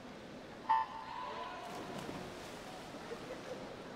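Swimmers dive into a pool with splashes.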